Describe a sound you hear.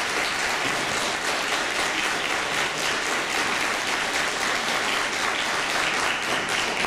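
A large audience claps loudly and steadily in a hall.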